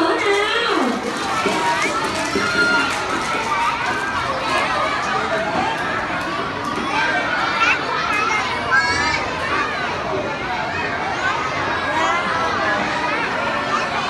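Many small children chatter and call out all around.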